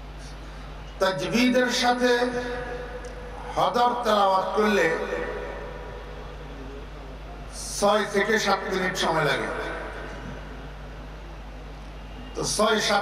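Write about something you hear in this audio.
An elderly man preaches with animation through a loudspeaker, his voice echoing.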